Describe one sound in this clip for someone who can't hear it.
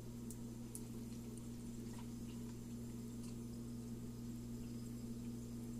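Juice pours from a bottle into a plastic cup.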